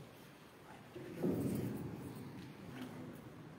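A microphone is handled with a loud thump and rumble.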